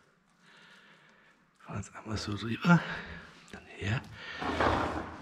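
Hands slap and press a soft, wet mixture with a squelching sound.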